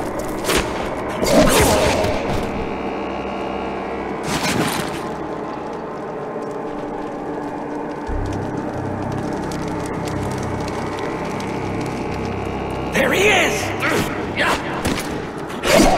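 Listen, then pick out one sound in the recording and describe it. A creature snarls and growls up close.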